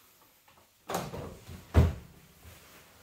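A plastic machine cover is pushed down and thuds shut.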